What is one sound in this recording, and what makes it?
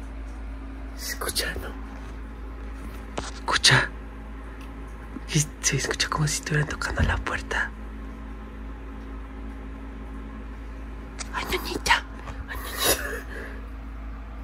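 A young woman giggles softly close by.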